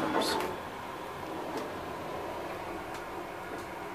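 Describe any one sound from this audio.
Elevator doors slide shut.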